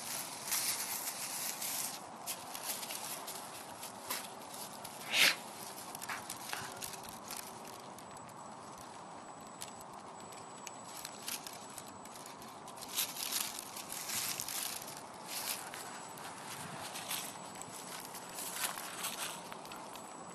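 Sheep tear and munch grass close by.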